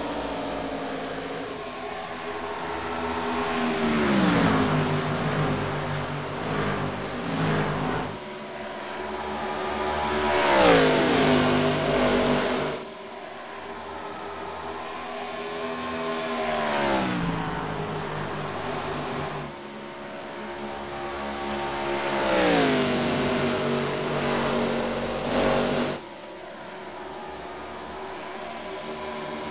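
Racing car engines roar past at high speed, their pitch dropping as they pass.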